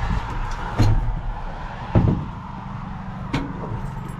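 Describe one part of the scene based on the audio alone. A truck door clunks open.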